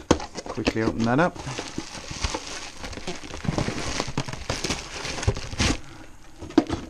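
Cardboard flaps rustle and scrape as a box is opened close by.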